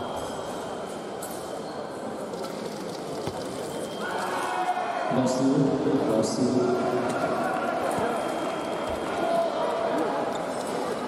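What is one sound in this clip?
Several people talk quietly in a large echoing hall.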